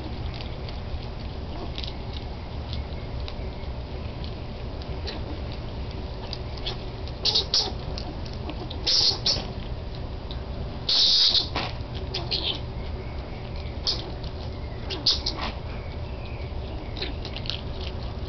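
Skunks crunch and chew dry food from a bowl, close by.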